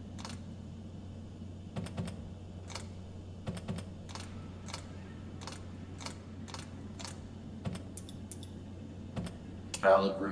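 Buttons click one after another on a control panel.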